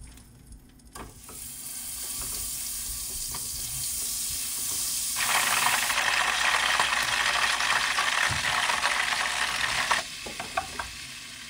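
Butter sizzles and crackles in a hot pan.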